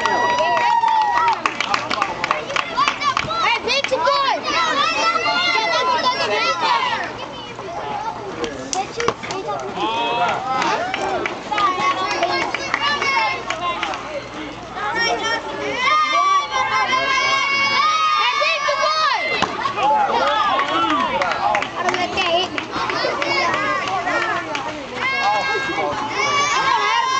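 Children shout and cheer loudly outdoors.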